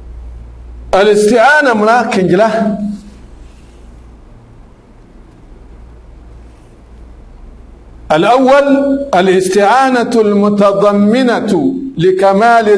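A man speaks calmly into a close microphone, in bursts with long pauses.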